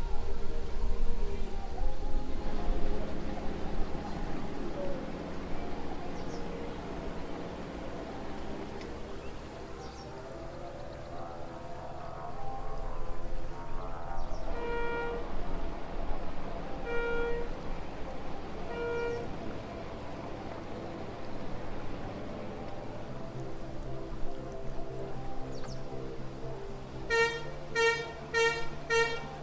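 Paddles splash rhythmically in water.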